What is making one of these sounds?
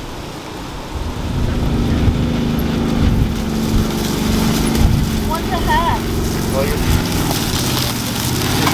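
A utility vehicle engine hums as it drives slowly closer over leaves.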